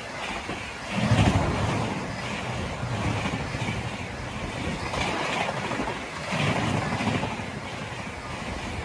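A passenger train rushes past close by with a loud roar.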